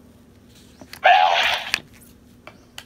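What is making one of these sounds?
A toy device plays a loud electronic sound effect.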